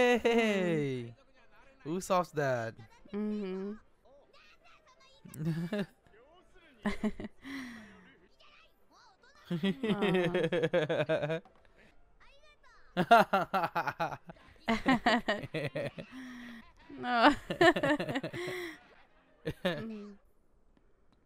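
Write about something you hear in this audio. A young woman laughs into a microphone close by.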